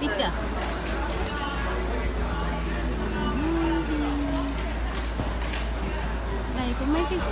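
A crowd of men and women talk and murmur nearby outdoors.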